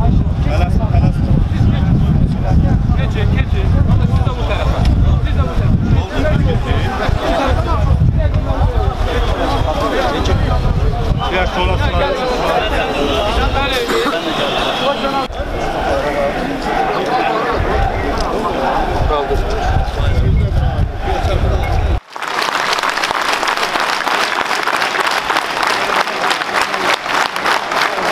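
A large crowd of men murmurs and calls out outdoors.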